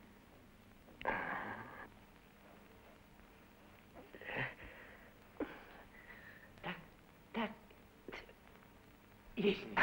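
A man strains and grunts while arm wrestling.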